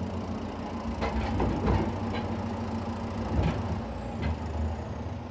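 A wooden crate bumps and rattles as it is pushed.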